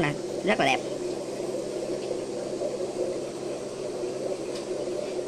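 A water pump hums steadily.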